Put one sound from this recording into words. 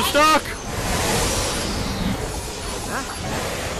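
Energy bubbles burst and crackle with a magical shimmer.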